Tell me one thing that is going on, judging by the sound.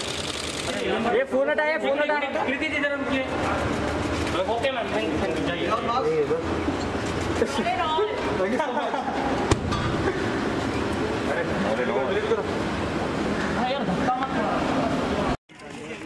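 Several men call out and talk loudly close by.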